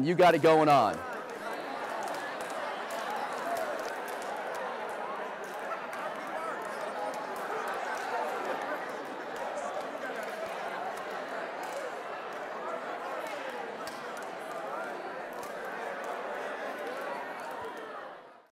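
A large crowd of men and women talk and laugh all at once.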